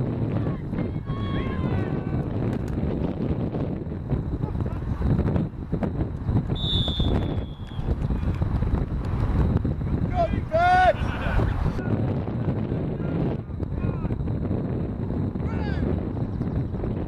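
Men shout calls to each other from a distance across the field.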